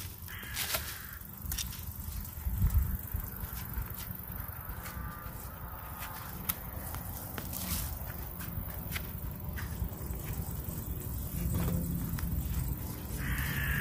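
Gloved hands scrape and rustle in dry soil.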